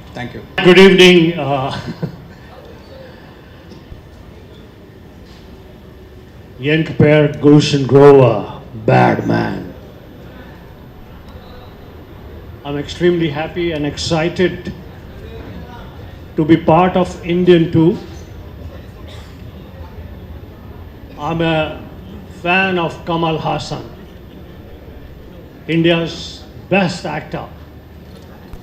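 A middle-aged man speaks into a microphone in short, deliberate phrases with pauses between them.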